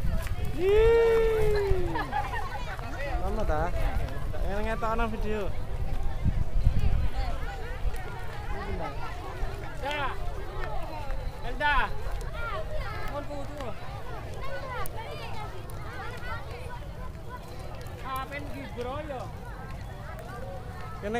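A crowd of men, women and children chatter and call out outdoors.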